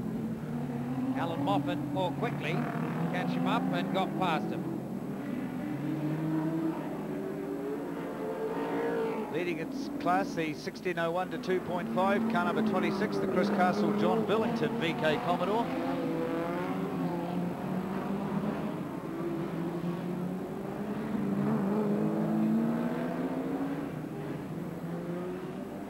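Racing car engines roar and whine, rising and falling in pitch as the cars speed past.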